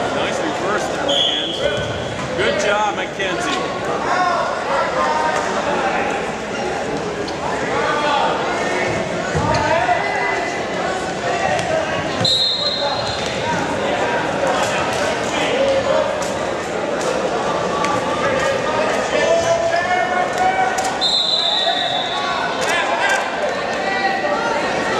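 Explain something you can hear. A crowd of spectators shouts and cheers loudly throughout, in an echoing gym.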